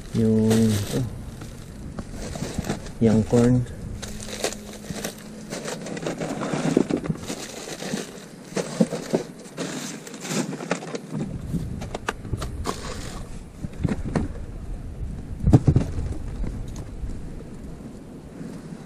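Food items knock and thud against a wooden crate.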